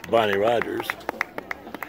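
A woman cheers loudly close by.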